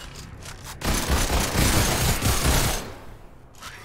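A weapon fires in a rapid burst.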